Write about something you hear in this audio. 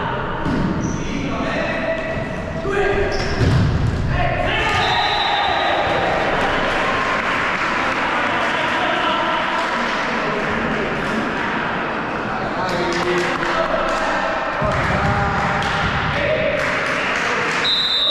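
A volleyball thumps as players strike it.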